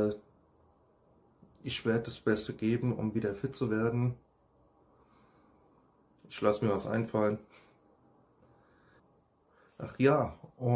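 A man speaks calmly and close up, with pauses.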